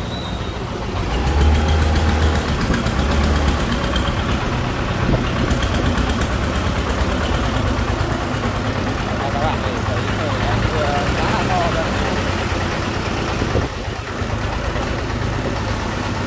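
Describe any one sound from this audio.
A motor tricycle engine putters loudly as it approaches.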